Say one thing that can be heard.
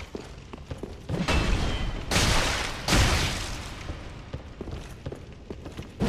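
Armoured footsteps clatter on stone.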